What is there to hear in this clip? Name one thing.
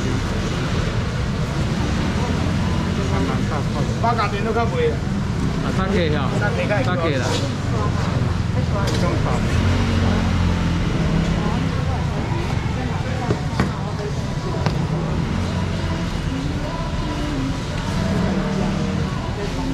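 A knife chops and scrapes on a cutting board.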